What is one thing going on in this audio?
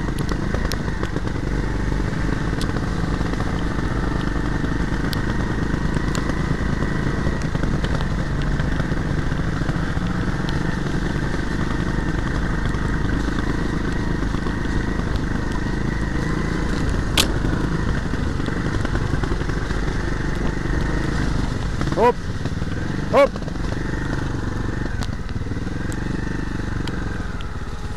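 A dirt bike engine drones and revs up close.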